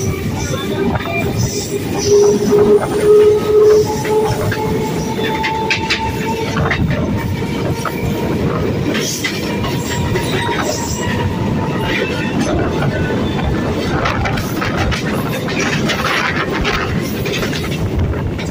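A passenger train rushes past at speed on the next track, heard from an open train doorway.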